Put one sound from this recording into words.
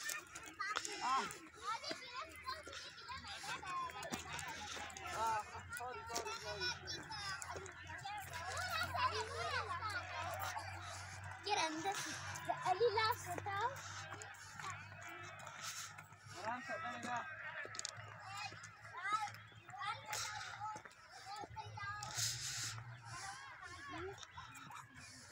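Several children chatter and call out nearby, outdoors.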